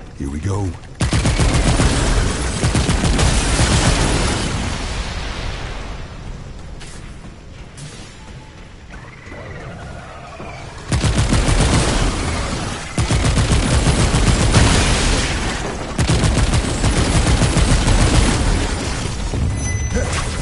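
A gun fires rapid crackling bursts at close range.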